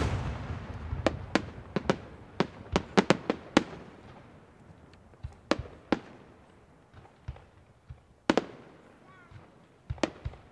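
Fireworks crackle and pop in quick bursts.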